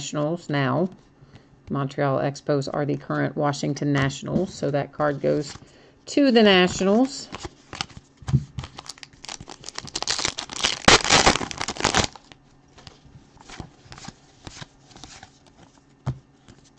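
Trading cards shuffle and rustle in hands.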